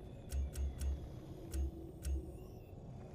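Short game menu clicks sound in quick succession.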